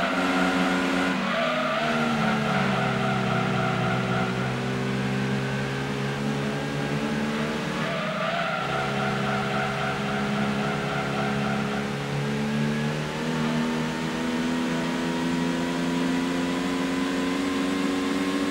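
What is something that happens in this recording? A racing car engine roars steadily, rising and falling in pitch as it speeds up and slows for bends.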